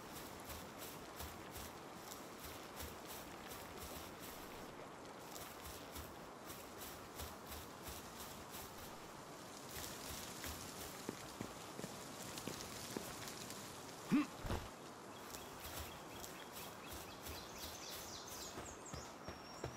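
Footsteps run steadily over grass and stone.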